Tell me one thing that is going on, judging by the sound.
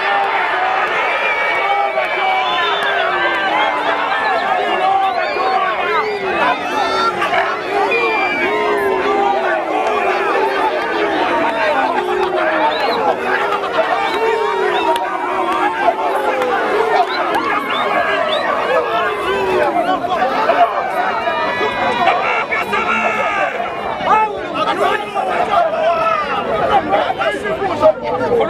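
A large crowd of men and women sings, chants and ululates loudly outdoors.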